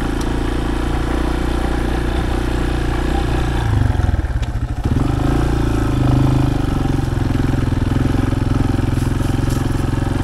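A dirt bike engine revs and putters close by.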